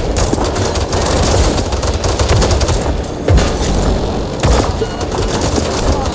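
Energy gunfire blasts in quick bursts.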